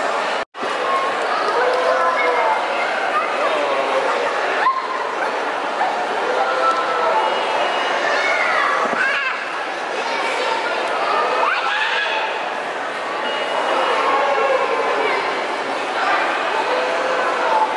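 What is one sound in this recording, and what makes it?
Many children chatter and shout nearby in a large echoing hall.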